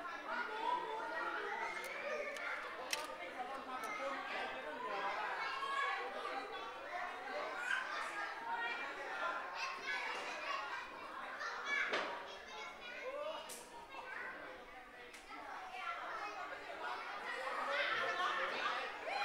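Young children shout and squeal as they play.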